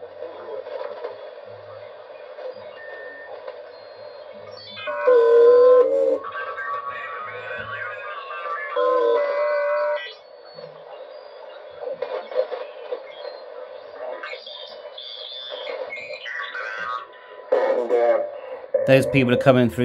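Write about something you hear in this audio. A radio receiver hisses and whistles with warbling signals as it is tuned.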